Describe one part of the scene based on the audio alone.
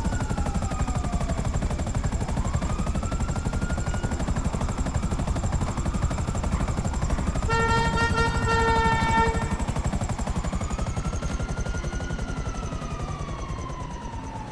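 A helicopter's rotor thumps and whirs loudly, then winds down.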